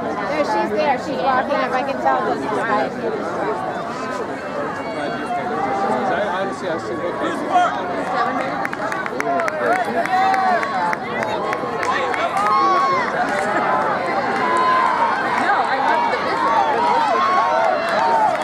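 A crowd of spectators cheers and shouts nearby.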